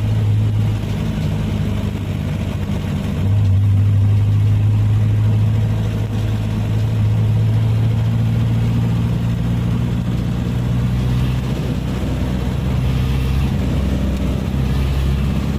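A truck's diesel engine drones steadily close ahead.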